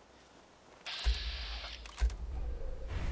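A pistol fires loud, sharp shots.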